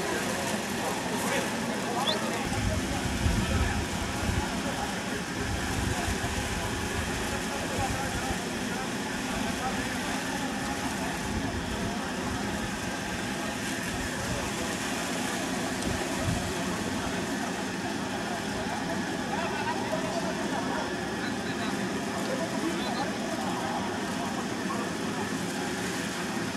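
A crowd of people chatter in the open.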